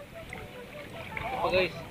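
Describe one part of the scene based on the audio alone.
Water splashes as a fish thrashes at the surface.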